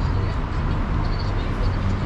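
A car rolls slowly over cobblestones nearby.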